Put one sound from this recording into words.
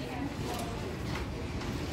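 An electric fan whirs steadily nearby.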